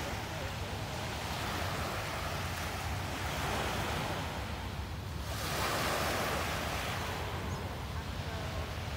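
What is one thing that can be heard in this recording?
Small waves lap and wash gently near the shore.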